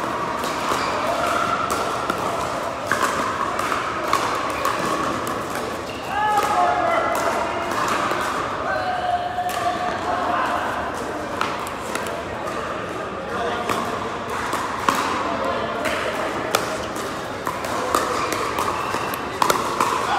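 Paddle pops from other games echo around a large hall.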